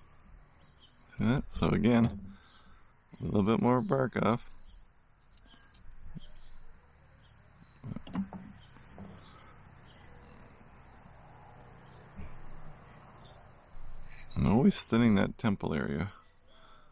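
A knife scrapes and shaves wood in short strokes.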